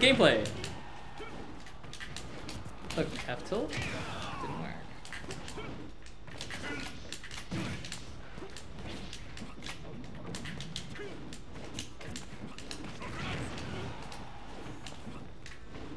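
Video game hits and punches thud and crack in quick bursts.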